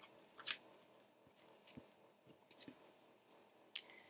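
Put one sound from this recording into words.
A card is set down softly on a smooth surface.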